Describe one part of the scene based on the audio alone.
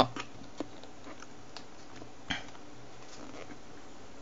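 A phone is lifted out of a cardboard box tray.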